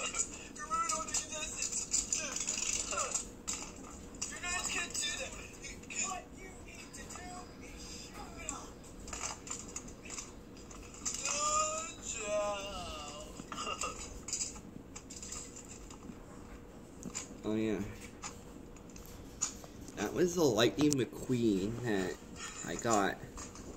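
Plastic toy cars clatter and click as hands move them, heard through a small tablet speaker.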